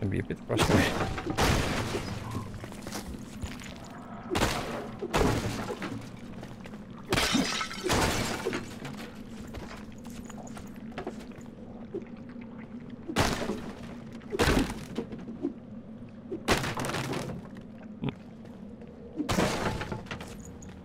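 Wooden crates crack and smash apart in sudden bursts.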